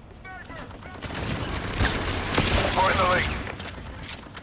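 Gunfire bursts out loudly in quick shots.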